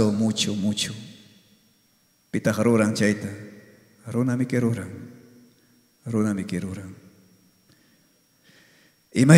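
A man speaks calmly into a microphone in a reverberant hall, in short phrases with pauses.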